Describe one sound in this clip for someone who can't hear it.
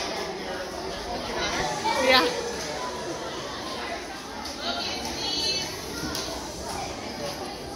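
A girl speaks into a microphone over loudspeakers.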